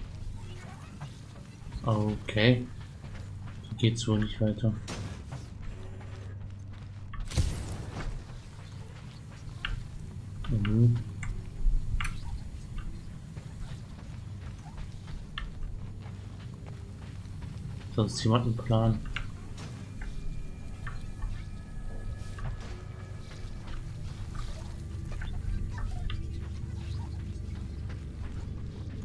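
Footsteps thud on a metal floor.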